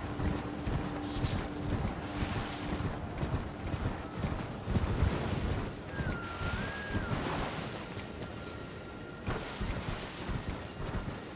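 A horse gallops with heavy, rhythmic hoofbeats.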